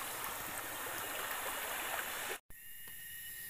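A river rushes loudly.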